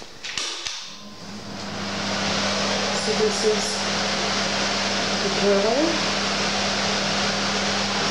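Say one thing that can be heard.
An extractor fan hums and whirs steadily.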